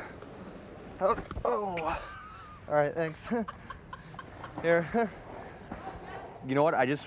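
A young man talks loudly nearby.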